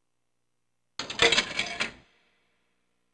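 An arcade machine gives out a short, bright burst of game sound.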